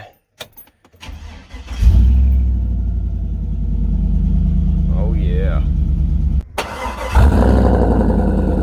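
A truck engine starts and rumbles loudly at idle.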